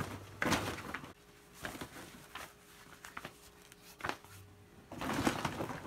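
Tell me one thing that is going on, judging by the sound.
Fabric rustles as it is handled and set down.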